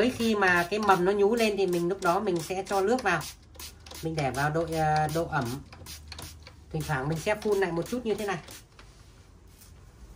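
A spray bottle hisses as it mists water.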